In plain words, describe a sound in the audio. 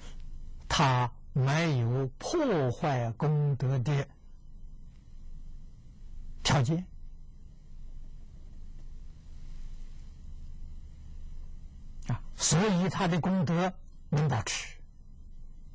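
An elderly man speaks calmly and slowly into a close microphone, with long pauses.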